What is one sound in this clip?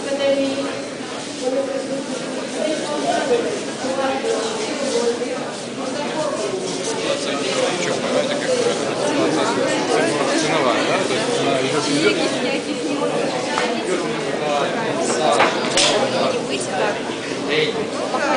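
A crowd of adults chatters all around in a busy echoing room.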